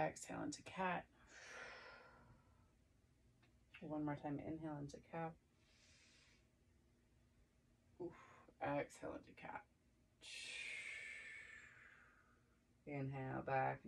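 A young woman breathes out deeply.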